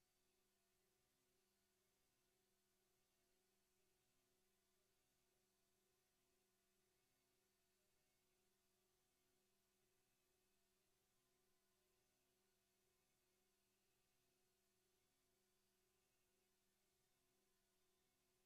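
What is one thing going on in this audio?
A synthesizer plays a soft, steady drone with a slow pulsing hum.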